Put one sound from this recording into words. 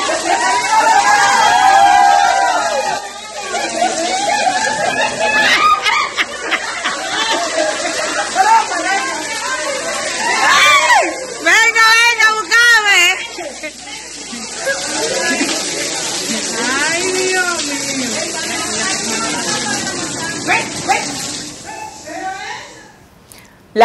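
Water pours and splashes down from a ceiling onto a floor.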